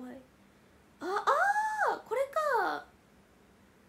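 A young woman exclaims loudly in surprise.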